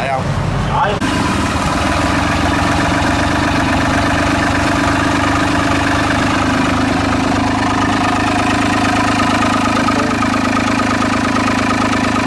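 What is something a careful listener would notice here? A small engine runs with a steady droning hum.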